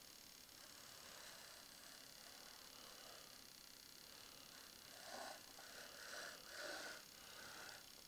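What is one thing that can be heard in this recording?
Wooden pieces tap and slide softly on a board.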